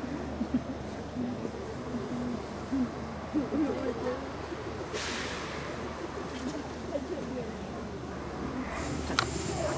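A man talks quietly close by.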